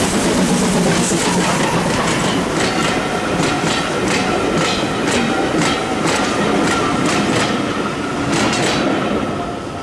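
Train wheels clatter rhythmically over rail joints.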